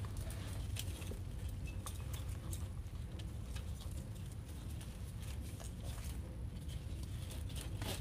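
Artificial leaves and ribbon rustle and crinkle as hands adjust a wreath.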